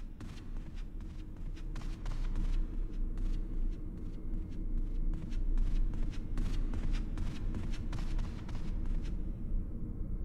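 Footsteps thud on a wooden floor inside a large echoing hall.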